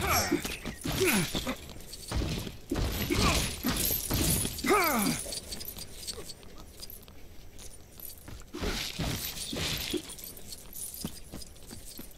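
Coins jingle and chime as they are collected.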